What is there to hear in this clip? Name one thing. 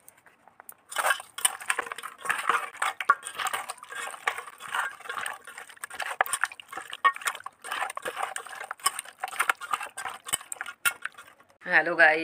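Hands squelch and squish through wet raw meat in a metal bowl.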